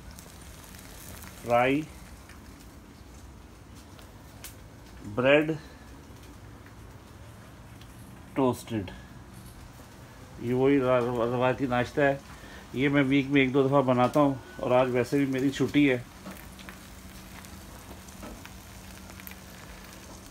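Eggs sizzle softly in a frying pan.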